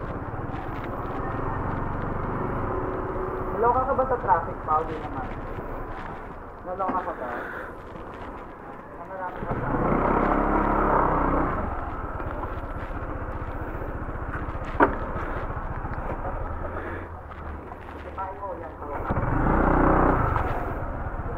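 A motorcycle engine idles close by with a low steady rumble.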